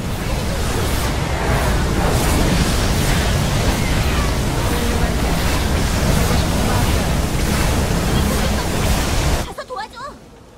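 Loud game battle noises of laser blasts and explosions roar without pause.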